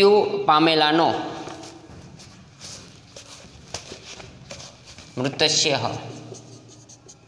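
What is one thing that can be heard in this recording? A man speaks slowly and clearly, with long drawn-out words, close to a microphone.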